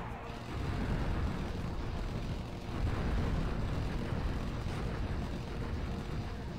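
Explosions rumble and burst again and again.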